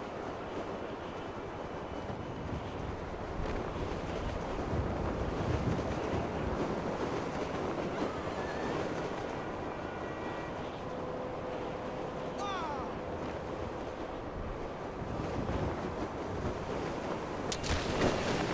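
Wind rushes loudly past a parachutist gliding through the air.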